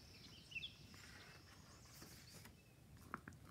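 A paper page turns with a soft rustle.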